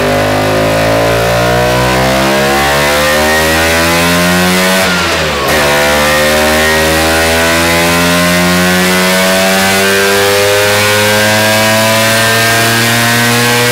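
A scooter engine revs hard and loud on a test roller, climbing steadily in pitch.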